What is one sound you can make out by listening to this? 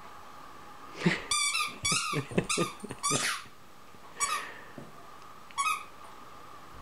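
A squeaky toy ball squeaks in quick bursts as a small dog chews it.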